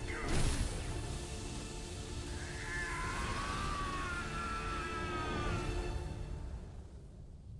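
Electricity crackles and sizzles loudly.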